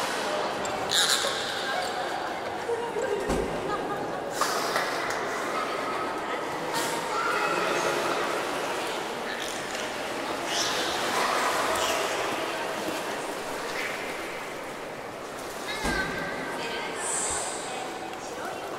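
Water splashes and ripples as a whale swims through a pool.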